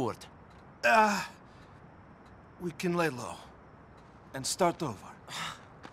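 A young man talks casually in short, broken phrases.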